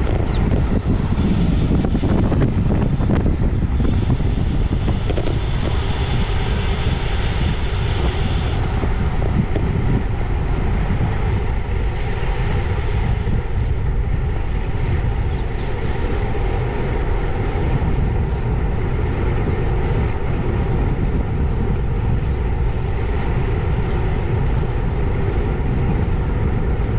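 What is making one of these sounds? Wind rushes loudly past while cycling outdoors.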